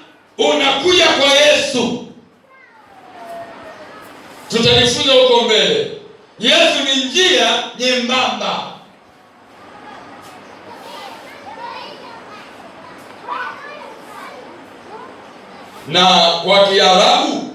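A middle-aged man speaks calmly and close to the microphone, in bursts with pauses.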